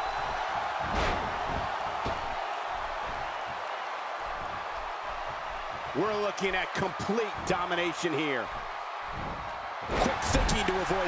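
Heavy bodies slam down onto a wrestling ring mat.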